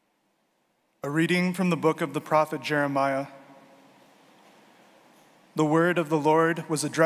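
A man reads aloud into a microphone in an echoing hall.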